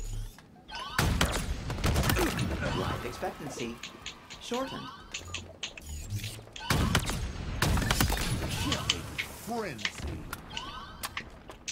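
Heavy gunshots boom and crack in loud bursts.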